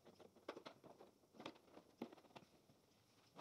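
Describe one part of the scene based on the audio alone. Light clicks and taps sound as a hand handles a windscreen.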